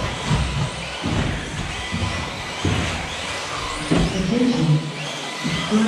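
Small electric model cars whine as they race around a track in an echoing hall.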